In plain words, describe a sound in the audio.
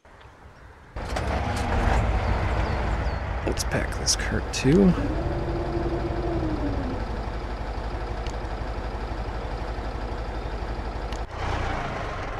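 A heavy truck engine rumbles and revs.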